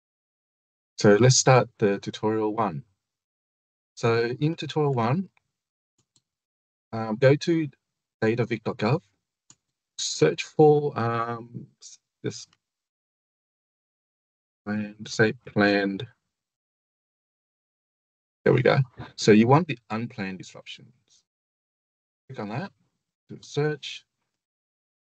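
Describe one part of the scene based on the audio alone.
A man speaks calmly and clearly into a close microphone, explaining in short phrases with pauses.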